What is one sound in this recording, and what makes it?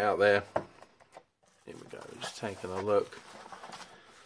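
Bubble wrap rustles and crinkles under hands.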